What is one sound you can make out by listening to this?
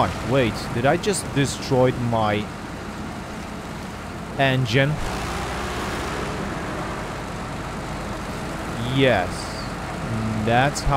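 A heavy truck engine rumbles and strains through mud.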